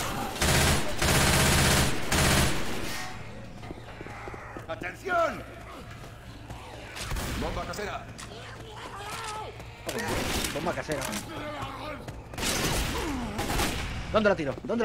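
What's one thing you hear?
A gun fires in rapid bursts, close by.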